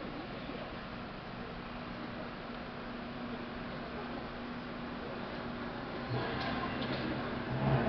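A man speaks at a distance through a loudspeaker.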